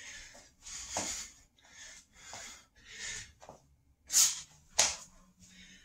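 Hands and feet thump on a hard floor.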